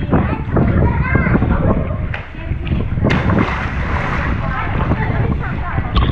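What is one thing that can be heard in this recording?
Water splashes as a swimmer dives into a pool.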